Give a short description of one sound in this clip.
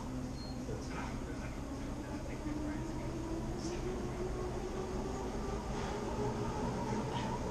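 Two men talk quietly up close.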